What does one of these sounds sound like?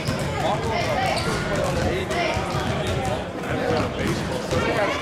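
Basketballs bounce on a hard floor, echoing in a large hall.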